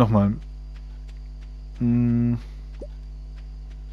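Soft footsteps tap along steadily.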